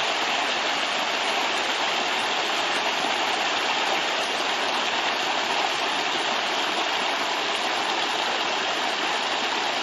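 Water rushes and splashes steadily over rocks in a stream close by.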